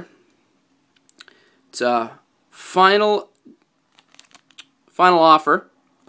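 A plastic wrapper crinkles softly in a hand.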